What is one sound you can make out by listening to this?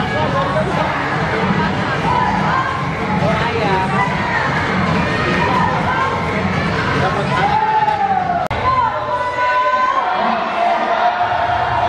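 Children shout and squeal excitedly.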